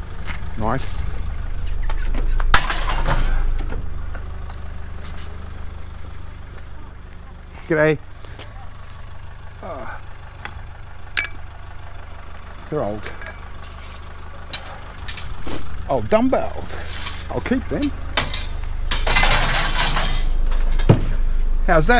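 Metal poles clank as they are dropped into a van.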